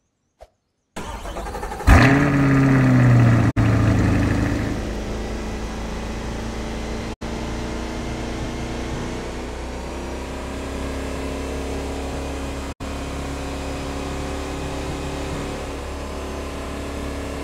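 A sports car engine starts with a roar and then hums steadily as the car speeds along.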